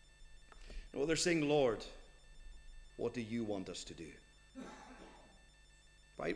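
A middle-aged man speaks slowly and deliberately into a microphone.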